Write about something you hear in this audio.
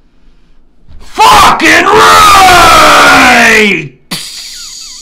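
A man shouts loudly and distortedly, right up against the microphone.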